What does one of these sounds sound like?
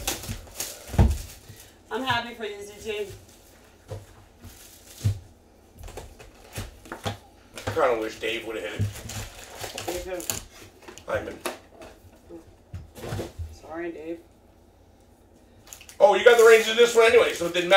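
Cardboard boxes and foil packs knock and rustle as they are handled.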